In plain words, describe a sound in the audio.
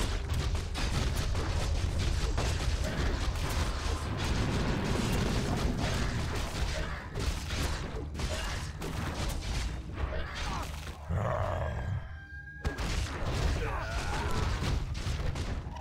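Spells and weapons clash and crackle in a busy battle.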